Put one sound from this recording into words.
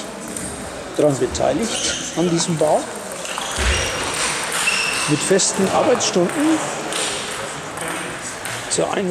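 Two men talk nearby in a large echoing hall.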